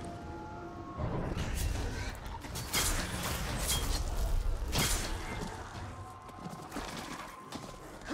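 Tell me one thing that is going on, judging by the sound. Creatures snarl and shriek as they are struck.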